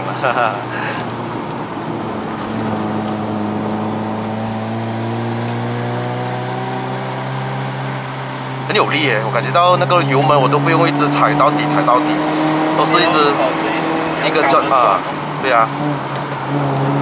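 A car engine hums steadily and rises in pitch as the car speeds up.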